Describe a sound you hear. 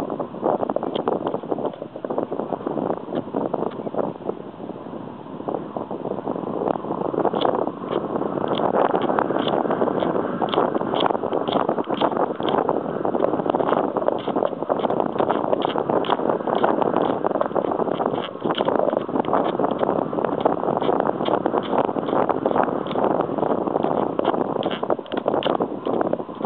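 Strong wind roars and buffets the microphone in gusts, outdoors.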